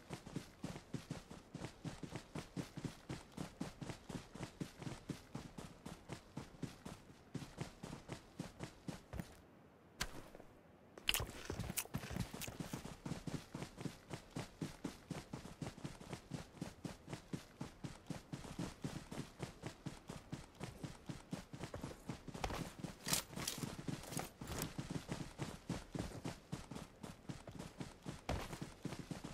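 Quick footsteps thud steadily through grass.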